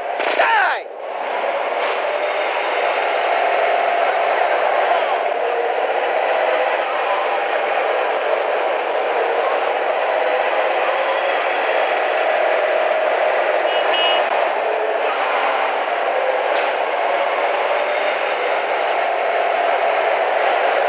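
A truck engine drones steadily as it drives.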